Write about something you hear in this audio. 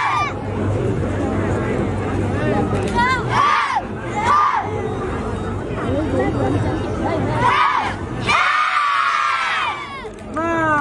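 A group of young people shout together as they kick.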